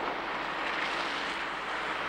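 An off-road vehicle drives over sand.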